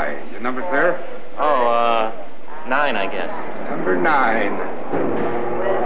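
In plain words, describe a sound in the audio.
A man speaks with concern, close by.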